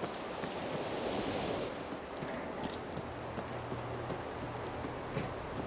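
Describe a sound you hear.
Footsteps thud steadily on a hard deck.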